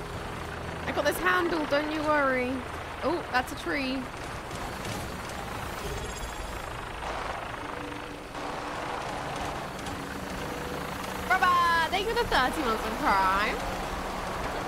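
An aircraft's rotors drone overhead.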